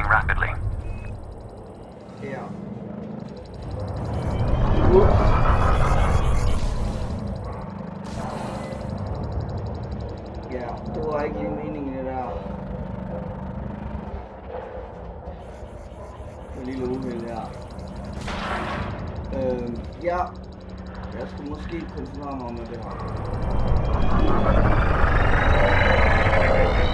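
A spaceship engine hums and roars.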